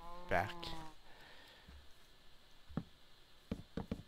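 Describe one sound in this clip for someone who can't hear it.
Wooden blocks knock softly as they are placed.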